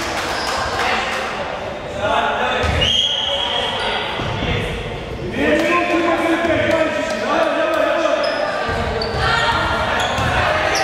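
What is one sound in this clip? A basketball bounces on the floor.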